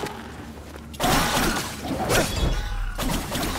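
A blade swishes through the air in a loud slash.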